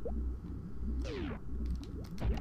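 A game door slides open with a sweeping electronic whoosh.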